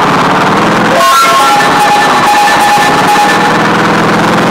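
Bright electronic chimes ring out quickly one after another.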